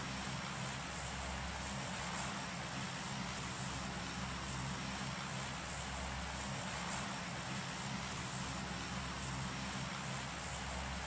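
A plane's engines drone steadily overhead.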